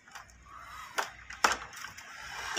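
A button on a robot vacuum clicks.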